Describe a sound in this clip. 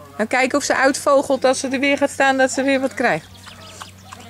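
A woman talks to a dog close by in a lively, coaxing voice.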